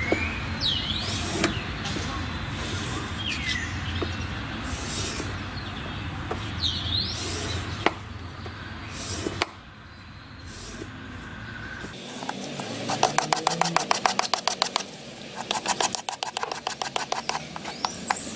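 A knife blade scrapes in repeated strokes across a sharpening stone.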